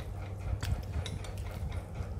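A metal spoon clinks against a ceramic bowl.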